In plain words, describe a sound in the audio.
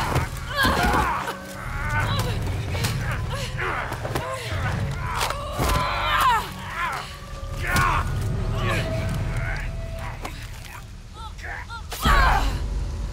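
Blows land with dull thuds.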